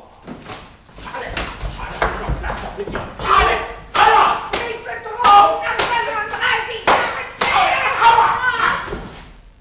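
A woman speaks loudly and with animation in an echoing hall.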